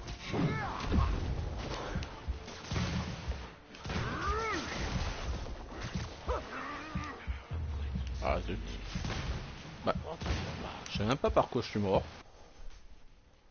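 Punches and impacts thud during a fight.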